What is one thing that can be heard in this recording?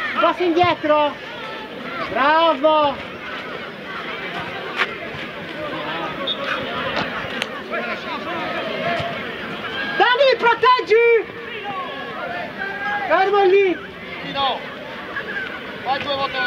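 Men shout loudly outdoors across an open field.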